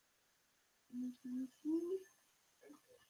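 A baby babbles softly.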